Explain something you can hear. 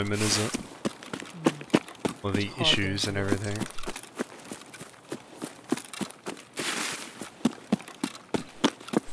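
Footsteps tread steadily through grass and brush.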